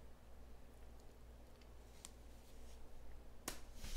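A plastic card case taps down on a hard surface.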